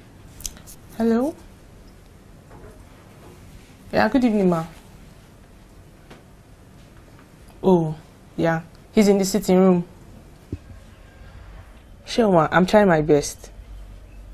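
A young woman talks on a phone in short, halting phrases, close by.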